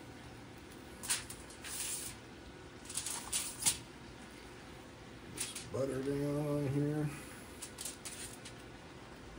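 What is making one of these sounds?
Aluminium foil crinkles as hands handle a rack of ribs.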